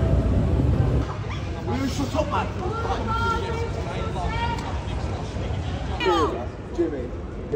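Young men and women talk in a small group outdoors.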